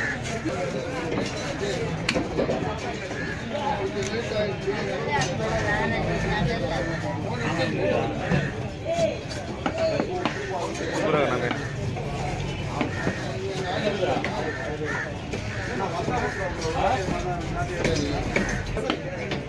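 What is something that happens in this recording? A large knife chops through fish on a wooden block with sharp thuds.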